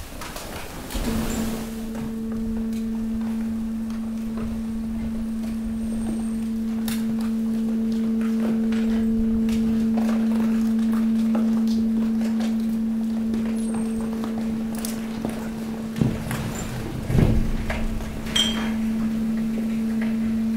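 Rubbish rustles, crunches and clatters as it shifts.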